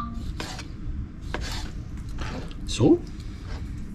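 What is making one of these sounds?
A knife taps on a cutting board as it slices.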